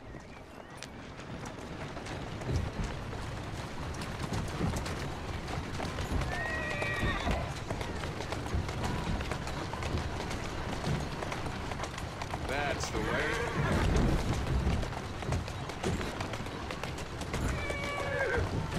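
Horse hooves clop steadily.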